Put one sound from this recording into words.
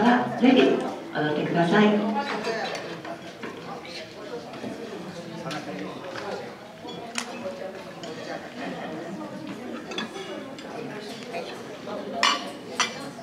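A jazz band with saxophones plays in a large hall.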